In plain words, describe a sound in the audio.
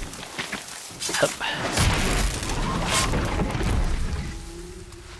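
A large machine creature crashes and rumbles as it is struck down.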